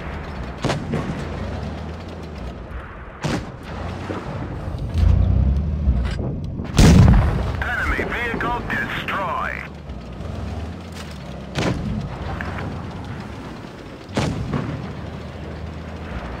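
A tank engine rumbles steadily.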